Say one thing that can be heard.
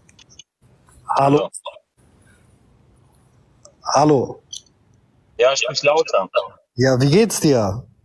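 A young man speaks close to a phone microphone in short bursts, calmly.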